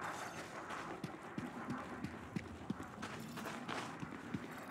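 Footsteps thud on gravelly ground at a steady walking pace.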